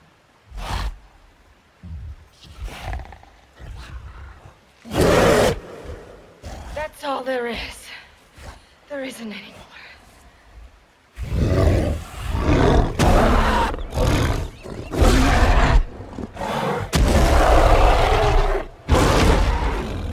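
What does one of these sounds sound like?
A huge gorilla growls low and roars loudly.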